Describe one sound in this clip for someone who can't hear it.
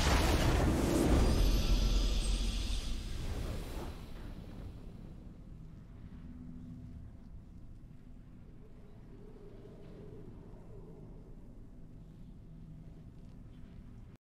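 A triumphant victory fanfare swells and then fades to quiet music.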